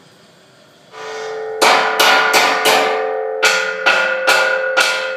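A metal frame rattles and rings loudly.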